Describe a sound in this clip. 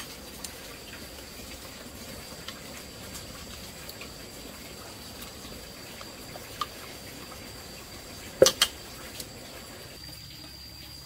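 A fire crackles softly under a pot.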